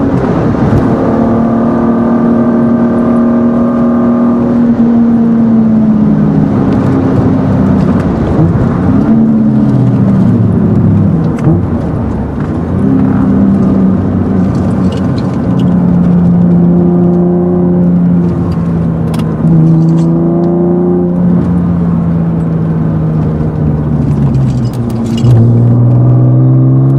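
A car engine roars loudly from inside, rising and falling in pitch as gears change.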